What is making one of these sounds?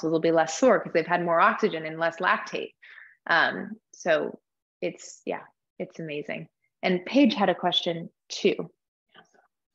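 A young woman speaks calmly and warmly, heard through an online call.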